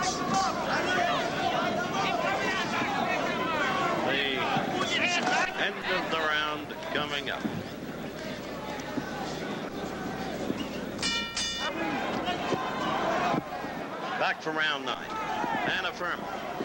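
A large crowd murmurs and cheers throughout.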